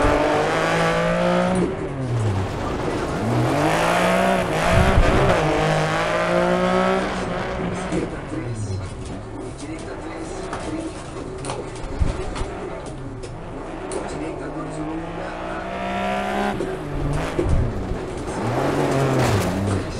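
Gravel sprays under a car's tyres.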